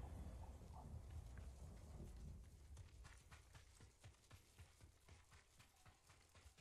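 Quick footsteps patter on a dirt path.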